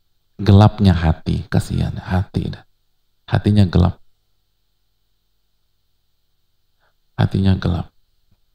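A man speaks with animation close to a microphone, pausing between phrases.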